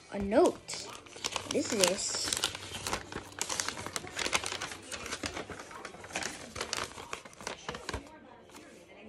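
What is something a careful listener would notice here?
Paper rustles and crinkles as it is unfolded.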